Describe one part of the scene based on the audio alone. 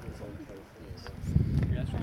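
A woman speaks emotionally close by.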